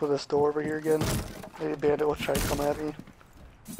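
A wooden barricade is smashed apart with loud cracks.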